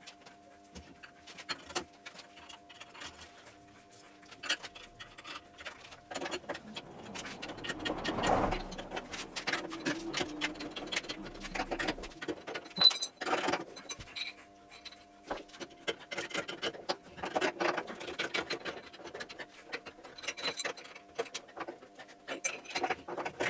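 Metal tools clink and click against a wheel.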